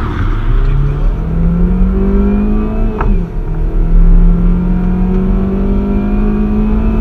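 Tyres rumble low on the road.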